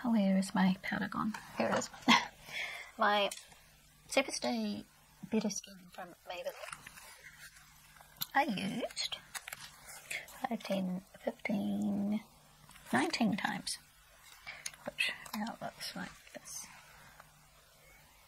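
A woman talks calmly and close to a microphone.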